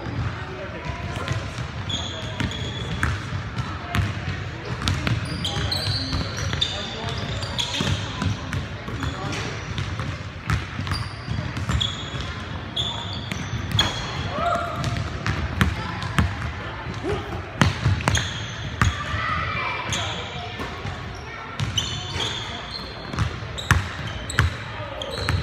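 Sneakers squeak sharply on the wooden court.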